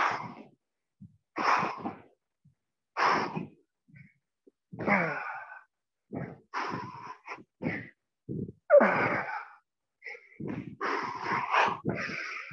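A man talks in short bursts between breaths, in an echoing room.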